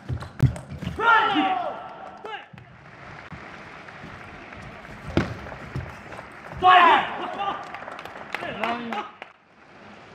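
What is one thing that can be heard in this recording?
Young men shout excitedly.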